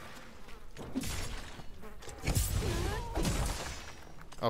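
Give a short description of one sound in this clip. A blade slashes and strikes with heavy thuds.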